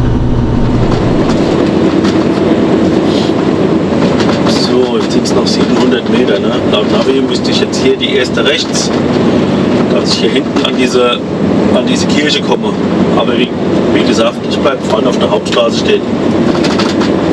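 A heavy diesel truck drives along a road.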